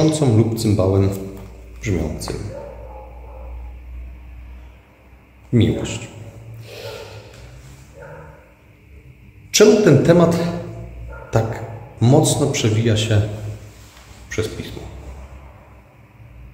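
A man speaks calmly and close by, pausing between phrases.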